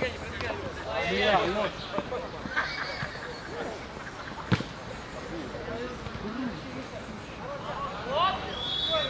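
Young men and boys shout and call out across an open field.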